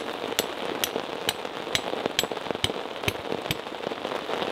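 A tool strikes wood in quick, even strokes close by.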